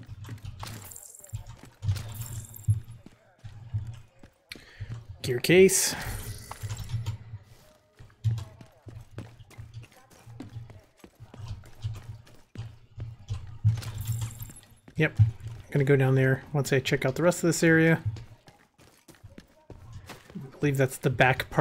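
Footsteps thud quickly on gravel and pavement as a person runs.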